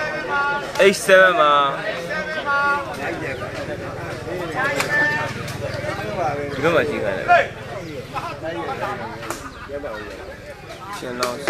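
A crowd of men chatters and calls out.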